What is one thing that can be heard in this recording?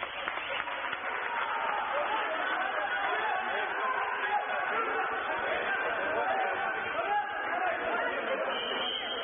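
Water splashes as swimmers thrash in a pool.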